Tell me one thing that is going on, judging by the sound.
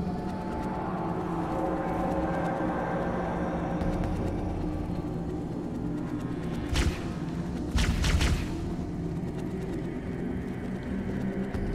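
A low, droning hum fills a large space.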